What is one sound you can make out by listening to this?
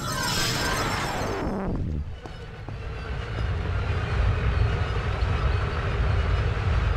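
Footsteps patter quickly on a stone floor.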